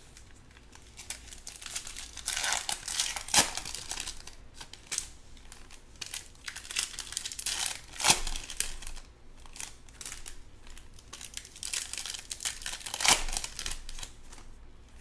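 Foil card packs crinkle and tear as they are ripped open.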